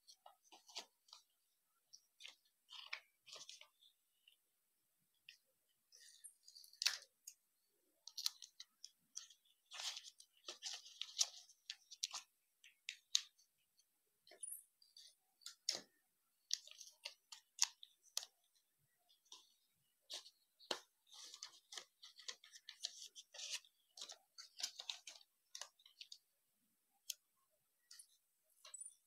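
Stiff paper crinkles and rustles as hands fold it close by.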